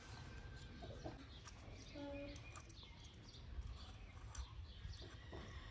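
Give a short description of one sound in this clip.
A knife scrapes softly as an apple is peeled.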